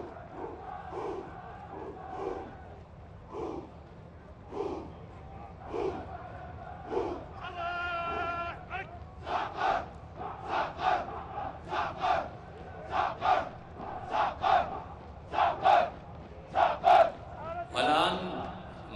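A group of men chants loudly in unison, in a steady rhythm.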